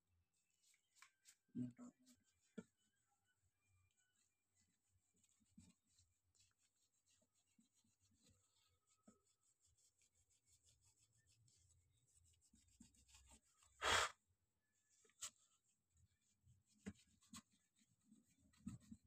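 Small metal parts click and tap quietly as hands work on a laptop's insides.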